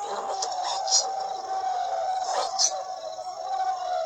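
A young boy speaks through a microphone.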